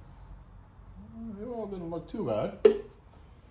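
A plastic bottle is set down on a metal table with a light knock.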